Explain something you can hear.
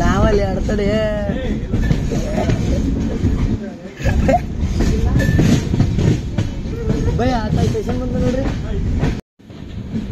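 A train rumbles and clatters along the tracks at speed.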